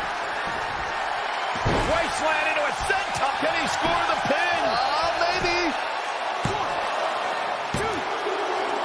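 Wrestlers thud onto a ring mat.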